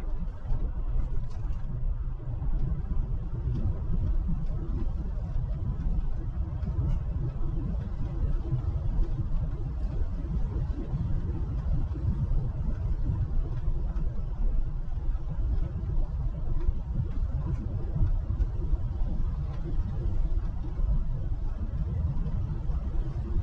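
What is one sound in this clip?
A car's engine hums low and steady as it drives along a road.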